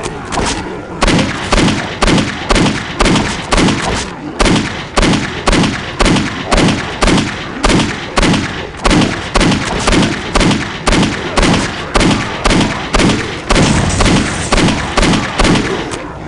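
A pistol fires shot after shot in a quick, steady rhythm.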